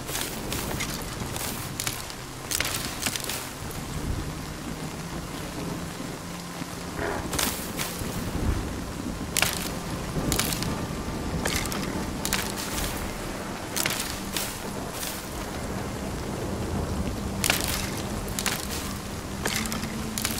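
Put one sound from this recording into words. Rain falls steadily.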